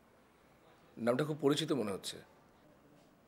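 A younger man speaks quietly nearby.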